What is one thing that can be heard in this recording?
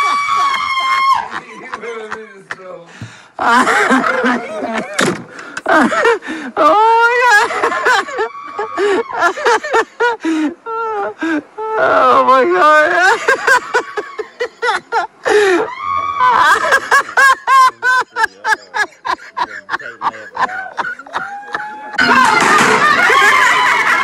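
A man talks and laughs with animation close by.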